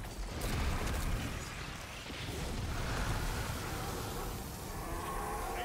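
Gunfire and explosions rumble heavily.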